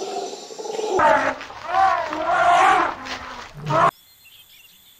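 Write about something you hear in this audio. A baby elephant squeals.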